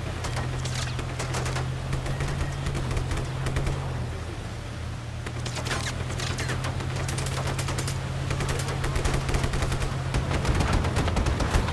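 Vehicles bump and scrape against each other.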